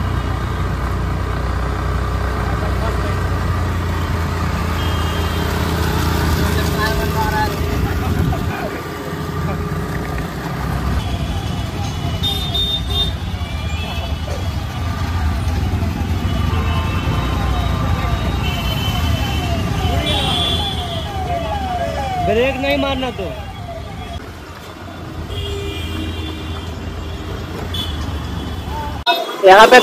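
A single-cylinder motorcycle engine rumbles, riding at low speed.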